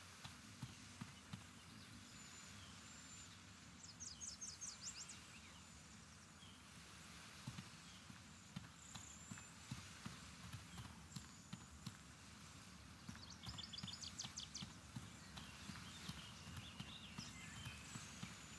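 Bare feet patter quickly over the ground.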